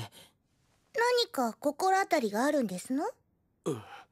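A teenage girl speaks brightly, close by.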